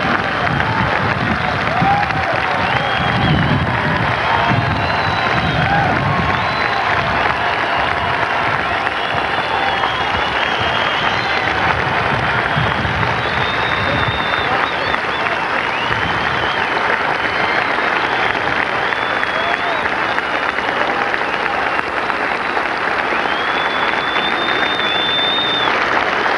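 Many people in a crowd shout and whistle.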